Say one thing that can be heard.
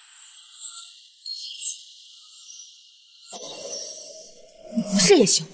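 A shimmering whoosh sweeps by.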